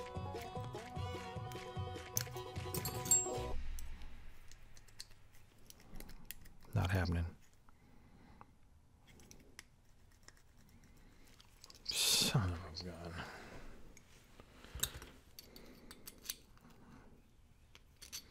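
Small metal lock parts click and tap as they are handled.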